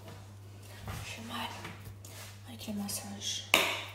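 A young woman speaks softly close by.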